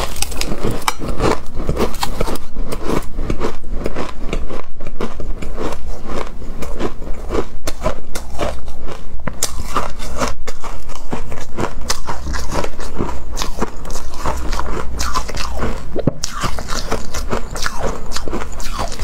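A young woman chews and crunches shaved ice close to a microphone.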